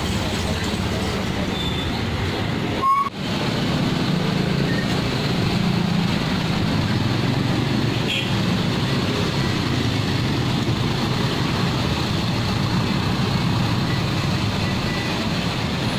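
Motorcycles ride past on the road.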